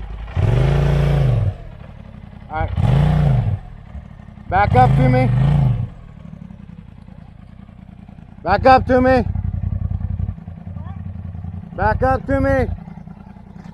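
An off-road buggy's engine revs hard in short bursts.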